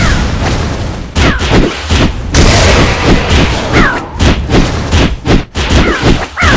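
Magic spell effects whoosh and sparkle in quick bursts.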